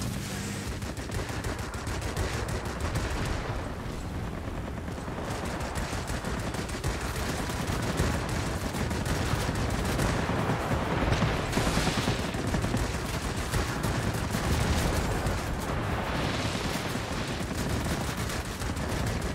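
Guns rattle in rapid bursts.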